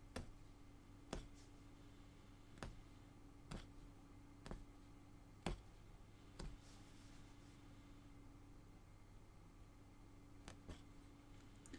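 A punch needle thumps rhythmically through taut cloth.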